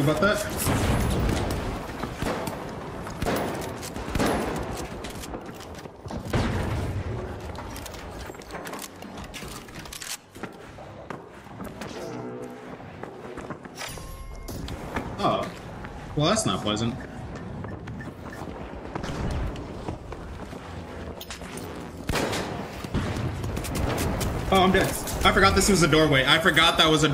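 Gunfire rattles in rapid bursts close by.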